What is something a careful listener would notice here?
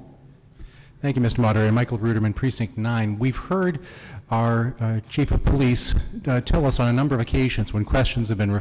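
A man speaks steadily into a microphone, heard over loudspeakers in a large echoing hall.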